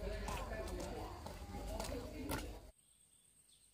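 Rubber boots crunch along a dirt road.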